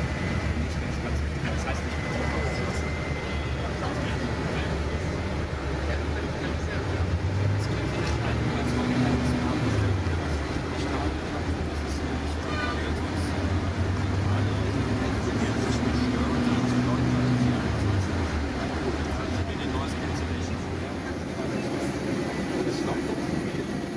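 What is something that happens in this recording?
Tyres roar on the road surface.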